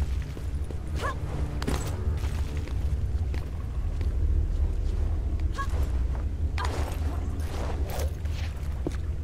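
Hands scrape and shuffle along a stone ledge.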